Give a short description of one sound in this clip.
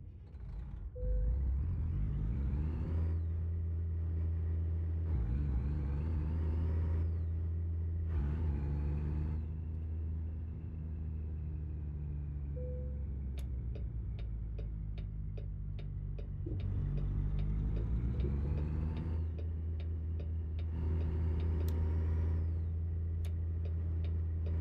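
A heavy truck engine revs up and down repeatedly as gears change.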